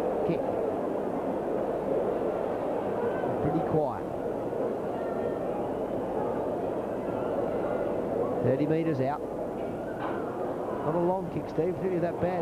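A crowd murmurs and calls out across an open stadium.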